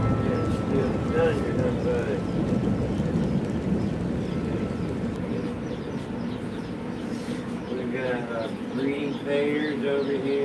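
Small caged birds chirp and tweet nearby.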